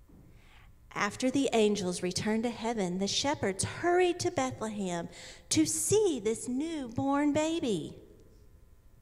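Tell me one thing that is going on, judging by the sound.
A woman speaks animatedly into a microphone, heard through loudspeakers in a large room.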